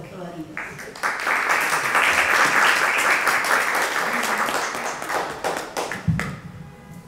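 People in an audience clap and applaud.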